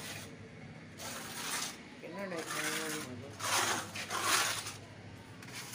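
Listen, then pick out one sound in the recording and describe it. A scraper rasps against a plaster wall.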